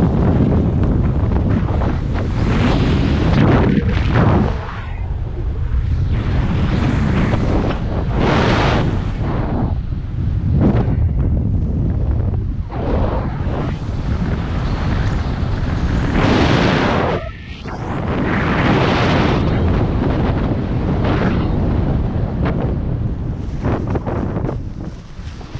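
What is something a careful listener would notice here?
Strong wind rushes and buffets loudly past, close up.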